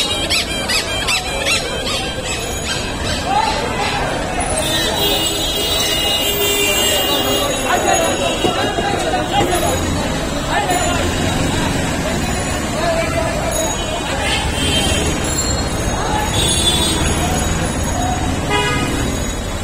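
A lively crowd of men chatters outdoors on a busy street.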